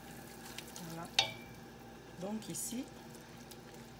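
A wooden spoon stirs thick paste in a metal pot.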